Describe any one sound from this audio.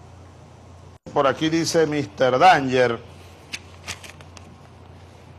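Paper pages rustle and turn.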